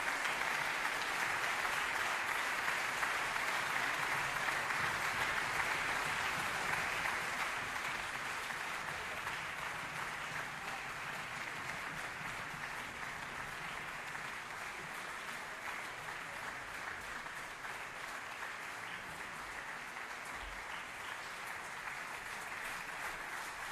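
A large audience applauds steadily in an echoing hall, slowly growing a little quieter.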